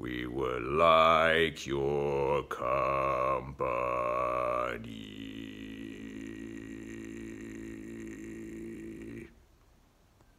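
A young man sings close by, holding long notes.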